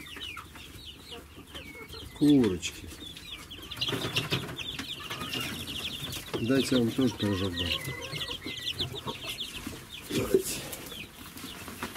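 Many young chicks peep shrilly and constantly, close by.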